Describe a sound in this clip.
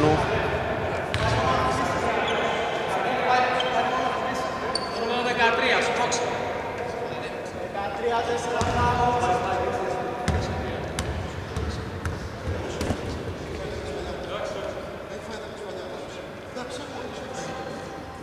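Men shout and call out to each other across the hall.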